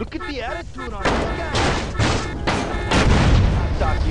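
A car door opens with a clunk.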